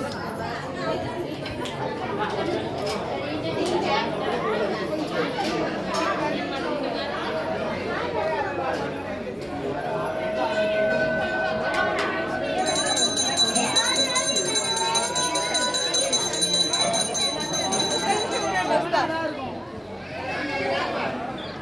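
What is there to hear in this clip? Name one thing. A crowd of men and women talk all around.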